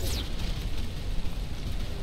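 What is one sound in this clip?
Flames burst and crackle briefly.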